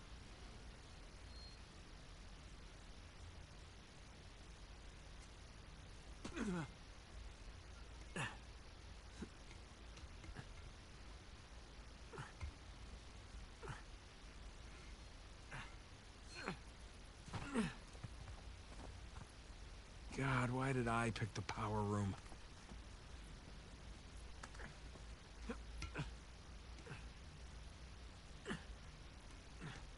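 Hands grip and scrape against stone ledges.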